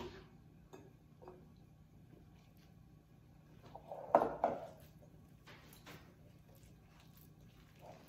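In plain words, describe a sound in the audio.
A spoon scrapes and stirs in a bowl.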